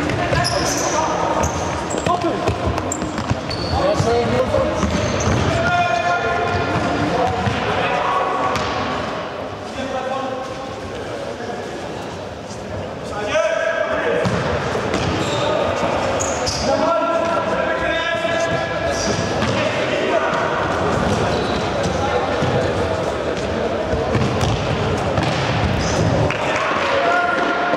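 Shoes squeak sharply on a hard floor in a large echoing hall.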